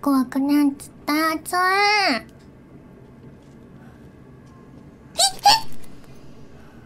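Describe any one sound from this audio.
A young woman exclaims loudly and excitedly into a microphone.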